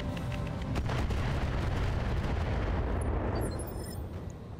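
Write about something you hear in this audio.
An explosion booms and rumbles away slowly.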